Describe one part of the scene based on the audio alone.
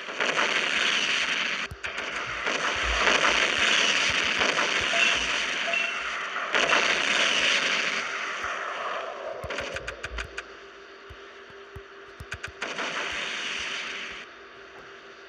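Explosions roar and rumble.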